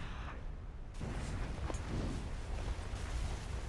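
Leaves and brush rustle as a horse pushes through them.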